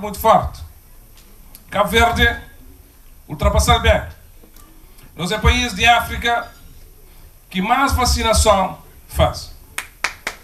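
A man speaks through a microphone over loudspeakers, in short deliberate phrases with pauses.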